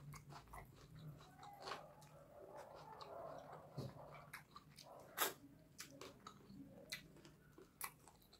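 Fingers squish and mix moist rice and food.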